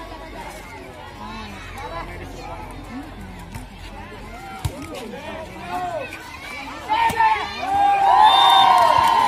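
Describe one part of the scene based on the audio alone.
A crowd of spectators chatters and cheers loudly outdoors.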